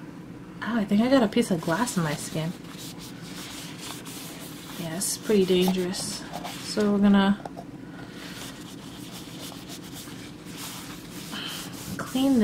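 A cloth rubs softly against a smooth hard surface.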